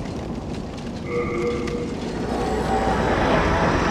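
A shimmering magical chime swells and rings.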